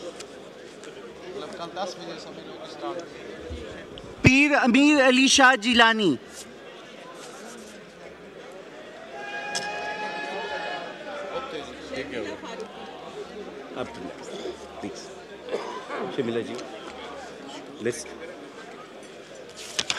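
Several men chat quietly in the background.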